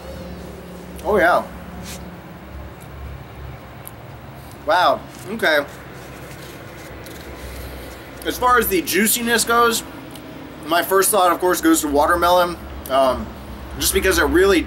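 A man speaks calmly close to a microphone, with pauses.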